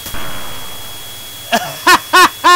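An explosion booms and fades.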